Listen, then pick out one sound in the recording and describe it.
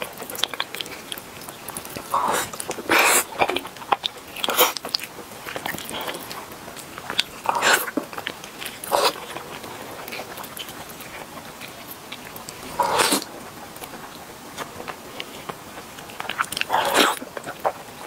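A young woman bites and chews crunchy meat close to a microphone.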